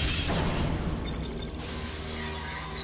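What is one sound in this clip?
A handheld device beeps in quick short tones.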